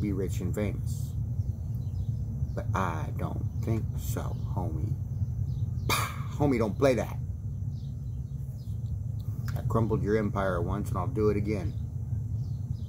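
A middle-aged man speaks calmly and close to the microphone, in short bursts.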